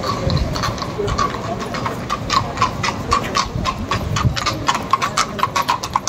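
Horse hooves clop on paving as a carriage approaches.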